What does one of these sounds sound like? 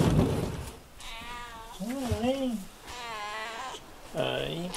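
A cat meows repeatedly, close by.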